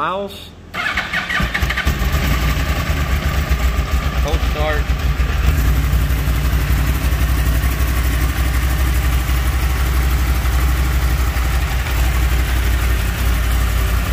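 A motorcycle engine starts up and idles with a steady, throbbing rumble close by.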